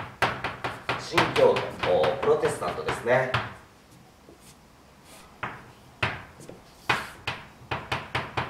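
Chalk taps and scrapes sharply on a board.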